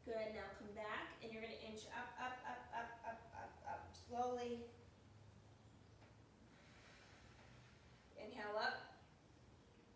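A woman speaks with animation into a nearby microphone, in a slightly echoing room.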